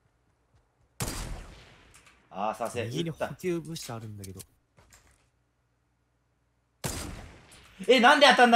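A rifle fires a loud, sharp shot that rings out and fades.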